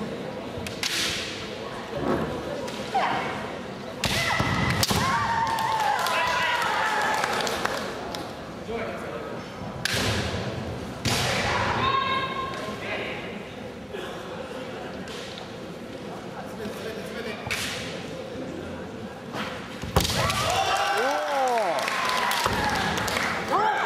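Fencers' bare feet stamp on a wooden floor.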